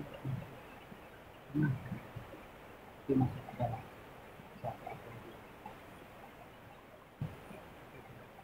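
A swollen river rushes steadily nearby.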